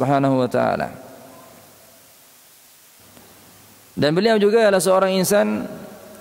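A man chants in a melodic, drawn-out voice through a microphone, with pauses between phrases.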